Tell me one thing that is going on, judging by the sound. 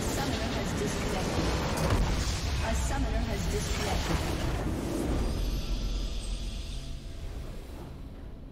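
A huge explosion roars and rumbles loudly, then fades.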